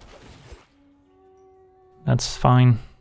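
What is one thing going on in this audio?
A short electronic chime rings.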